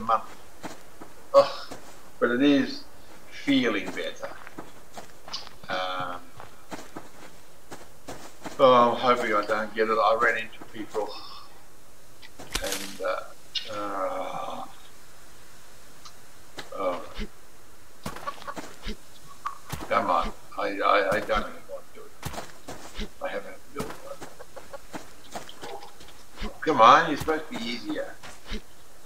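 Footsteps swish softly through grass.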